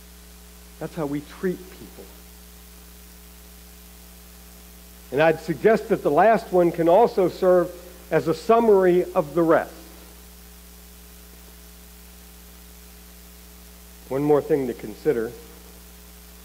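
A man speaks calmly through a microphone in a large echoing hall, pausing between phrases.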